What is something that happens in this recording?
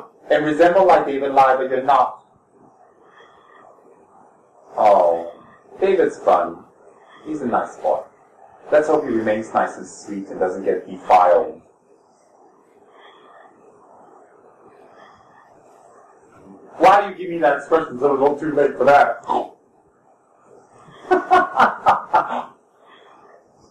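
A man speaks calmly and slowly, close by, in bursts with pauses.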